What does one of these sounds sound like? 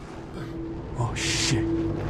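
A man grunts in pain.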